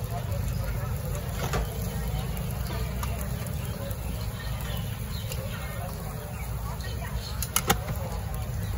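Metal tongs click and tap against a tray.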